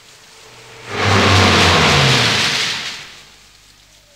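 A car drives past through the rain.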